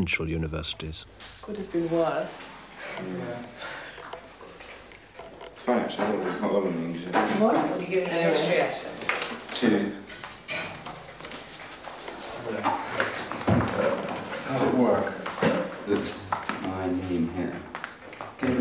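A crowd of men and women chatter and talk in a room.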